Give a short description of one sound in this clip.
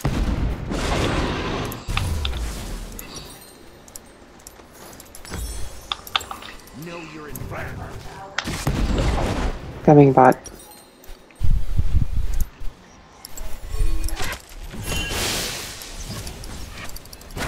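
Game spell and weapon effects crash and whoosh during a fast battle.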